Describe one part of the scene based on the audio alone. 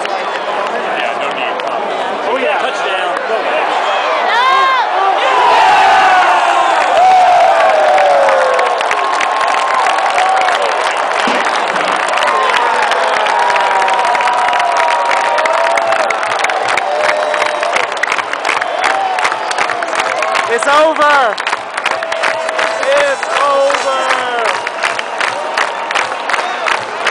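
A huge stadium crowd cheers and roars loudly.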